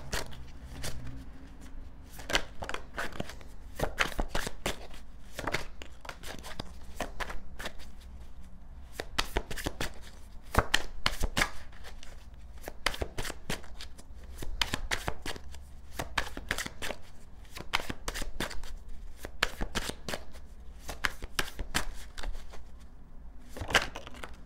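Cards shuffle and riffle with quick, crisp flicks close by.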